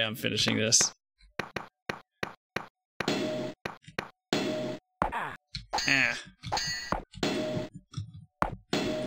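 Video game swords clash repeatedly.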